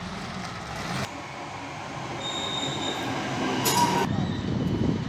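An electric train pulls into a station.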